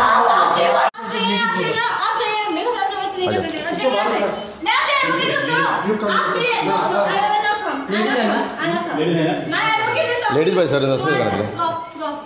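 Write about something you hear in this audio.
A young woman speaks agitatedly.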